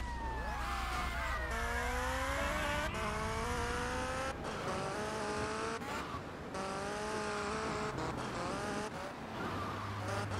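A motorcycle engine revs and shifts gears as it speeds along.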